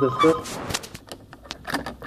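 A plastic pry tool scrapes and clicks against cracked glass.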